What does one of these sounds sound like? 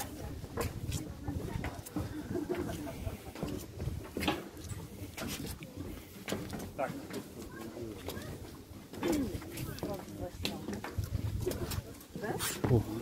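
Footsteps knock on wooden stairs as people climb.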